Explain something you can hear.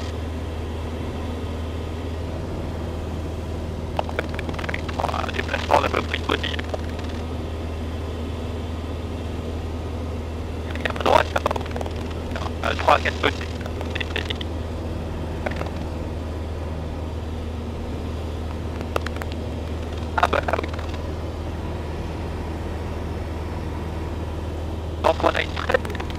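A light aircraft's engine drones steadily.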